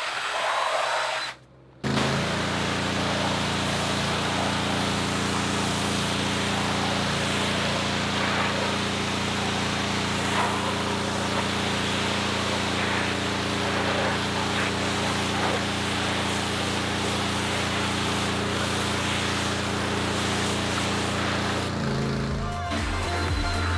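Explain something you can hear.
A power drill brush whirs and scrubs against a rubber mat.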